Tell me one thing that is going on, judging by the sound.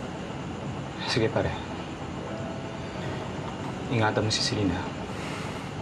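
A young man speaks quietly and tensely nearby.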